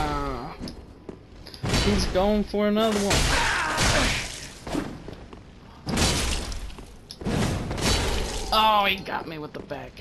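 Swords clash and ring in quick blows.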